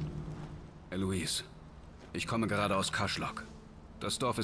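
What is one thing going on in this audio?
A second man speaks calmly in a low voice.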